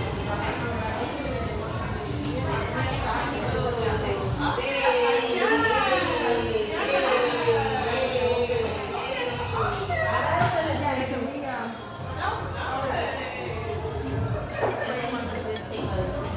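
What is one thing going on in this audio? Women chat nearby.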